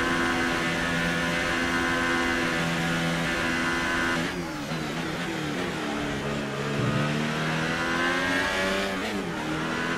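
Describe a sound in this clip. A racing car engine screams at high revs, drops sharply as the car brakes, then climbs again through the gears.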